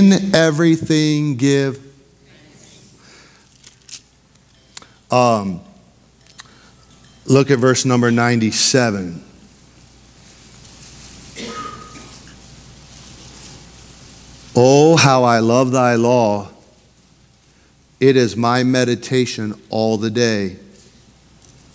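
A man speaks slowly and earnestly into a microphone, with long pauses.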